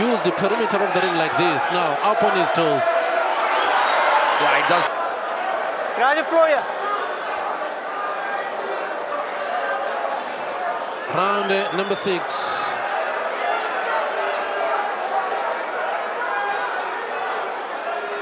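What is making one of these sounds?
A large crowd cheers and shouts in a big hall.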